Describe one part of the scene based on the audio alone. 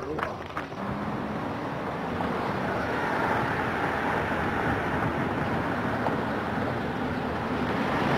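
A car engine hums as the car approaches and passes close by.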